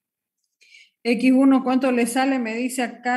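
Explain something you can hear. A middle-aged woman speaks through an online call.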